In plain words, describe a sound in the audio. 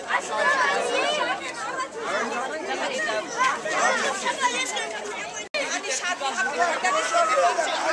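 A crowd of men and women chants loudly outdoors.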